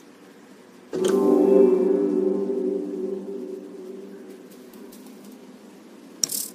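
A deep metallic chime rings out and slowly fades.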